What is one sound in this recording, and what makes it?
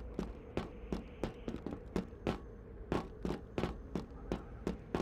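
Armoured footsteps thud quickly and evenly on a hard floor.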